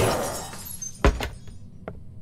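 A wooden door bangs open.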